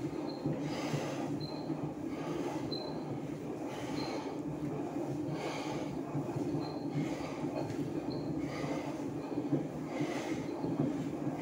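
An exercise machine whirs and thumps in a steady rhythm.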